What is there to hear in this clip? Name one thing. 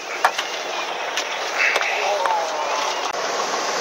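Water rushes along a boat's hull.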